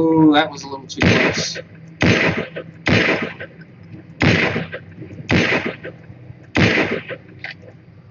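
A rifle fires loud single shots at a steady pace.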